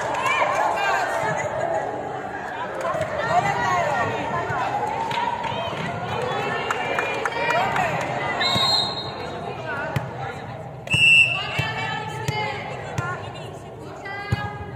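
A ball thuds against hands and bounces on the floor.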